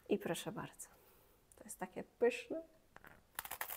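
A young woman speaks softly and closely into a microphone.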